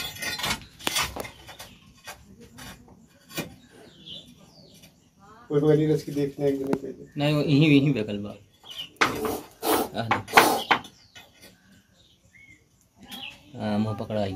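A metal rod taps and scrapes against a brick wall.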